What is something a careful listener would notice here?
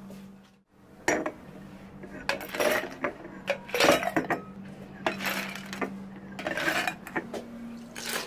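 Ice cubes clatter into glasses.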